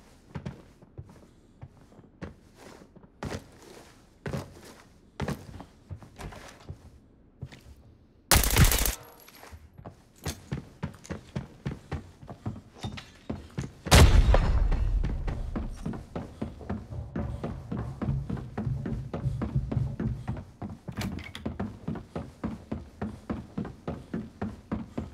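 Footsteps thud quickly and steadily on hard floors and wooden stairs.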